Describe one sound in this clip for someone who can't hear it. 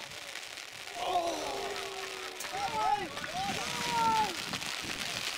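Young men shout and cheer excitedly in the distance outdoors.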